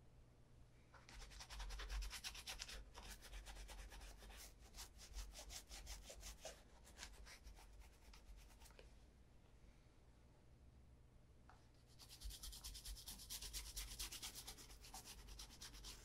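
A brush scrubs briskly on a leather shoe.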